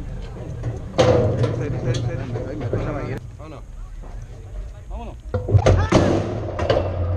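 A metal starting gate clanks and bangs.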